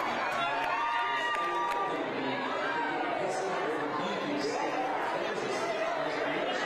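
A crowd cheers and shouts excitedly.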